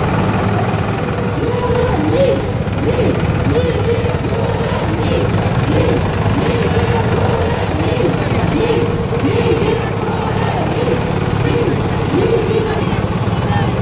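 A police siren wails nearby.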